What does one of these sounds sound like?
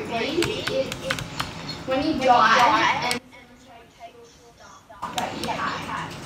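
Keyboard keys click under quick taps.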